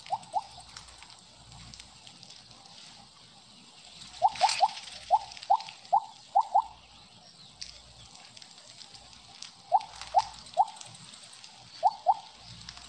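Short rising electronic blips chirp in quick bursts.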